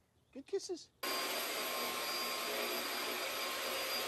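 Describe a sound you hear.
A vacuum cleaner roars steadily.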